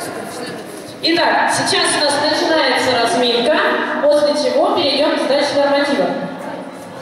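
A woman speaks through a microphone and loudspeaker in a large echoing hall.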